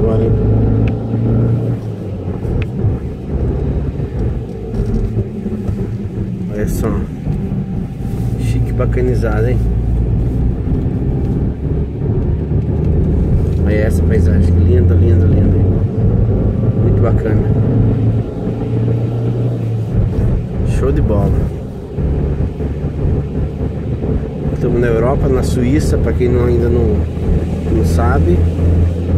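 A car engine hums steadily, heard from inside the car.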